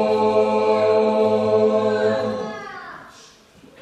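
A choir of young women sings together.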